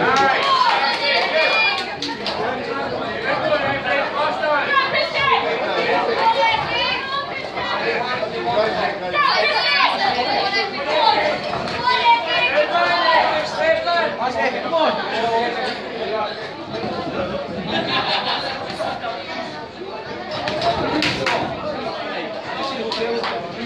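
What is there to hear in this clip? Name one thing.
A crowd of men and women chatter loudly in a large echoing hall.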